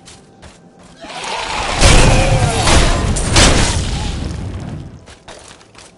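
Weapons strike hard in a loud fight.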